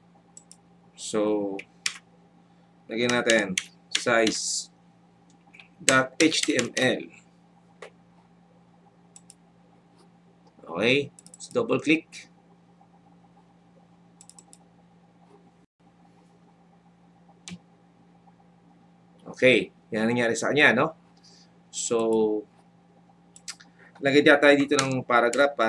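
A young man speaks calmly and close to a microphone, in short bursts.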